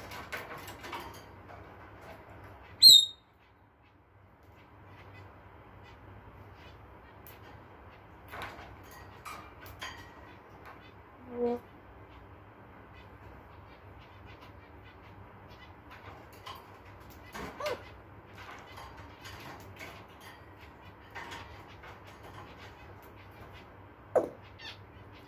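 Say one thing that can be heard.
A parrot's claws and beak click and scrape on metal cage bars.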